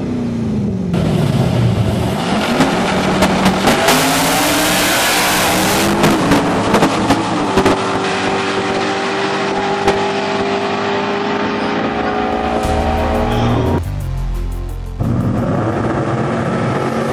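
Powerful race car engines roar loudly as cars launch and speed away.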